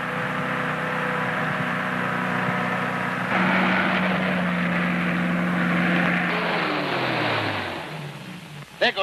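A car engine roars and slows down.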